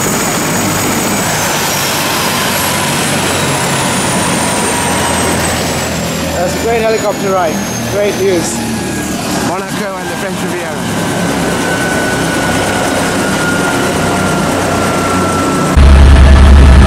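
A helicopter engine whines loudly nearby.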